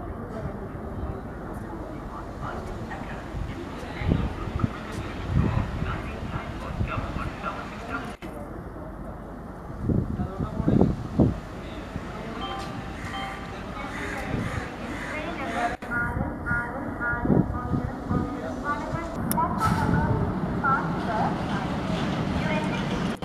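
A crowd of people chatters on a busy platform.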